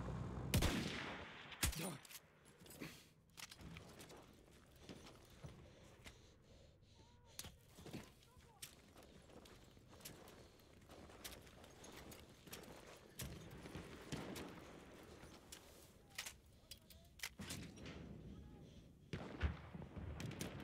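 Explosions boom and rumble far off.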